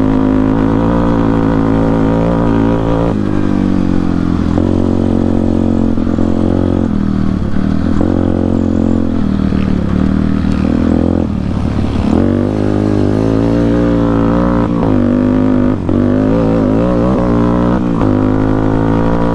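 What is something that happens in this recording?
A motorbike engine drones and revs up and down while riding.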